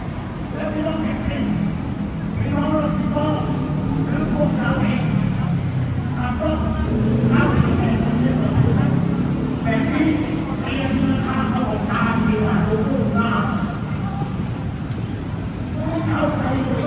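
Traffic rumbles steadily from a busy road below.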